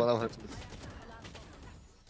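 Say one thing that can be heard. A gun fires a burst of shots.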